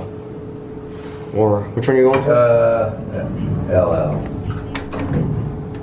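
Elevator buttons click as a finger presses them.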